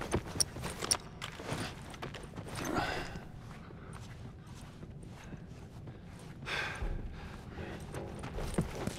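Soft footsteps shuffle slowly on a hard floor.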